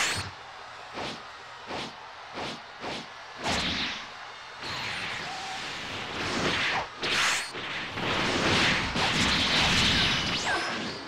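Fighters trade punches and kicks that land with sharp whooshing hits.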